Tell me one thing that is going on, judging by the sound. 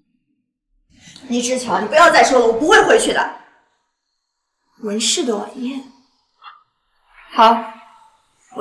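A young woman talks on a phone, close by.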